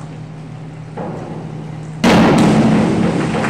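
A diver splashes into a pool in an echoing indoor hall.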